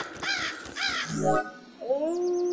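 A game menu opens with a short electronic tone.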